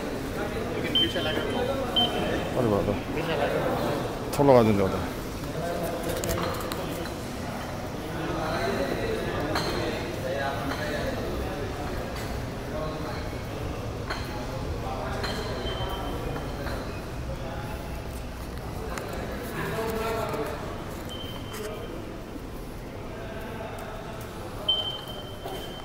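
A ticket gate beeps sharply.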